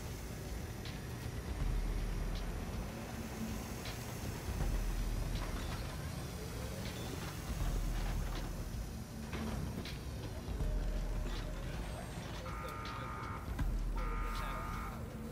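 Footsteps patter softly on a hard floor.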